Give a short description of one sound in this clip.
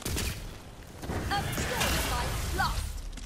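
A fiery explosion roars.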